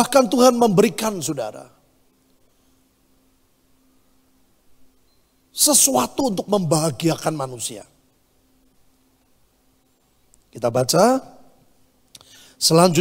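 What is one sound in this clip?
A middle-aged man preaches with emphasis through a microphone, in bursts separated by pauses.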